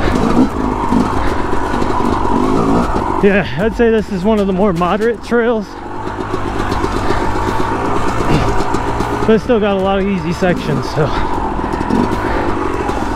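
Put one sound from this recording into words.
A dirt bike engine revs up and down hard while riding.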